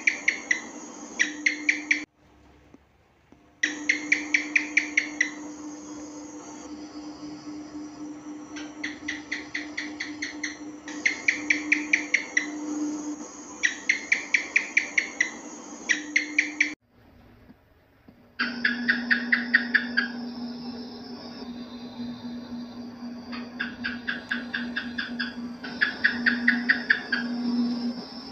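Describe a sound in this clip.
A gecko chirps in quick bursts of clicks.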